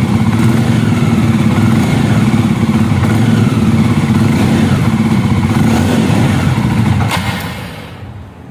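A motorcycle engine idles with a deep, throbbing rumble close by.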